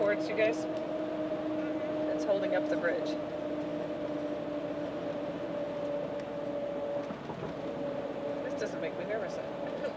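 Car tyres hum steadily on a bridge deck.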